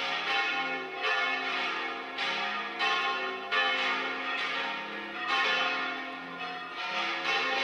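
A band of wind instruments and drums plays a festive tune outdoors.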